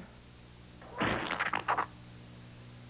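A pie splats against a face.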